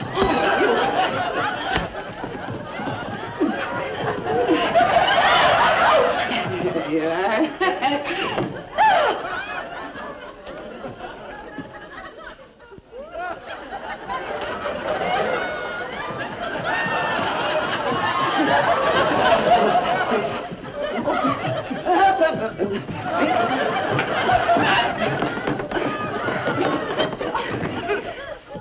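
Women shriek and shout with excitement as they scuffle.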